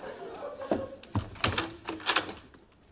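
A door opens and slams shut.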